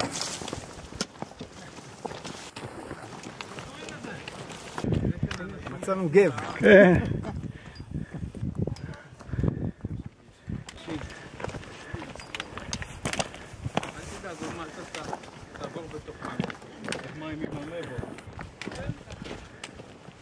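Footsteps crunch on loose stones and gravel.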